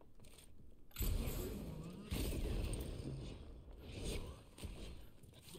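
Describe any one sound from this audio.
A rocket launcher fires with a loud, rumbling blast.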